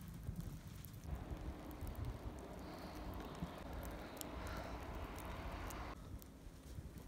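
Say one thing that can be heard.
Wind blows through trees outdoors.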